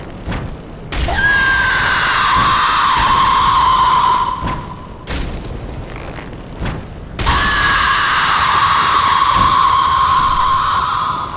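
Flames roar and crackle in loud bursts.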